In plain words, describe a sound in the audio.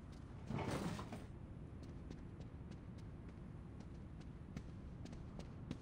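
Footsteps run across a carpeted floor.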